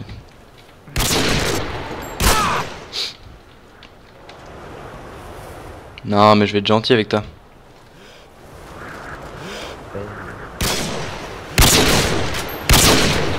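A sniper rifle fires loud shots.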